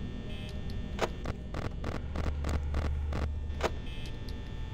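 Static crackles and buzzes in bursts.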